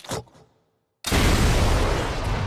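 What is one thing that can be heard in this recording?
A rocket launcher fires with a heavy blast.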